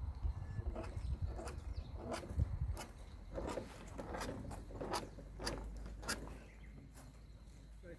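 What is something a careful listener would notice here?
An alpaca chews close by.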